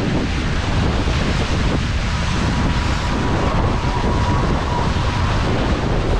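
Strong wind buffets loudly, close by.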